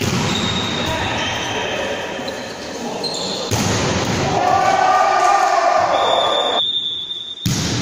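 Players' shoes squeak on a wooden floor in a large echoing hall.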